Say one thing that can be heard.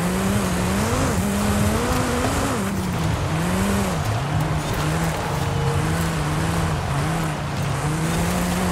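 Tyres crunch and hiss over gravel.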